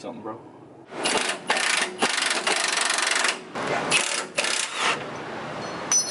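A metal tool clanks and rattles against metal.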